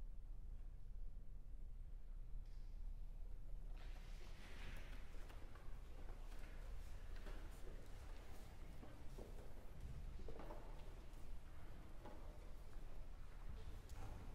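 A string ensemble plays in a large hall.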